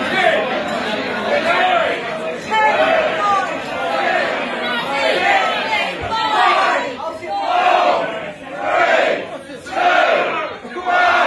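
A large crowd of men and women sings loudly together in a noisy, echoing room.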